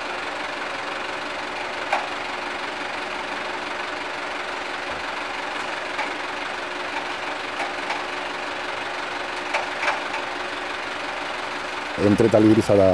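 A hydraulic lift motor hums steadily.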